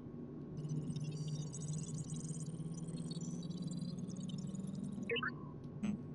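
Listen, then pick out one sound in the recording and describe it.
Rapid electronic ticking sounds as a counter quickly rolls up.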